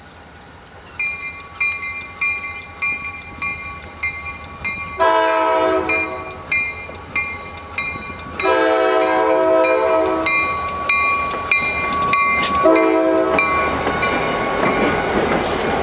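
A locomotive bell rings steadily and quickly.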